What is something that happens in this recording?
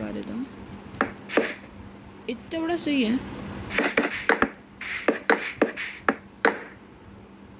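Wooden blocks are placed with short, soft knocks.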